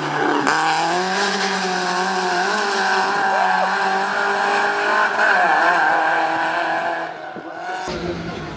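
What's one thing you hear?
A rally car engine roars and revs as the car speeds away.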